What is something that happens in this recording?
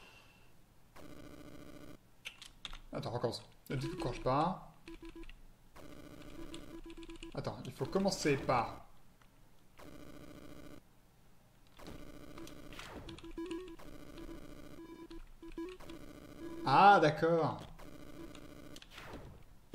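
Chiptune game music plays with short electronic blips.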